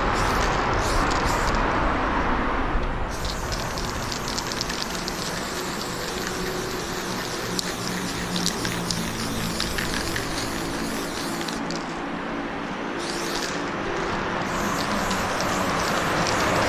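A spray can hisses steadily up close.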